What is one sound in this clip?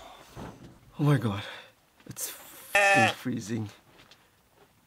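A young man talks drowsily nearby.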